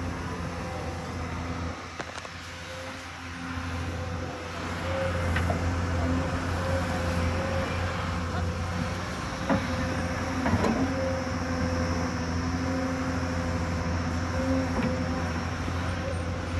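An excavator bucket scrapes and digs into dirt.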